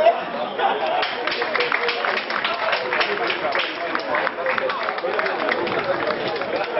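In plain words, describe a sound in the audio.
A small crowd claps rapidly nearby.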